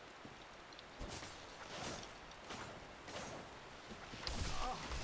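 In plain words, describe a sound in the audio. A sword swishes through the air with sharp hits.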